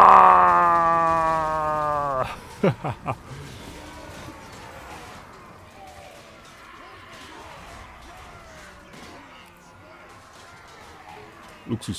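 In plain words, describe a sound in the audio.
Swords and shields clash faintly in a large battle.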